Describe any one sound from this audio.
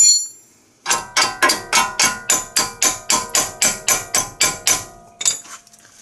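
A ratchet wrench clicks in quick, even strokes.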